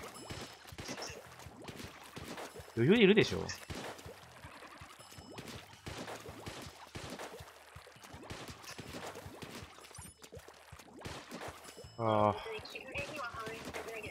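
Ink guns fire in rapid bursts of wet splattering shots.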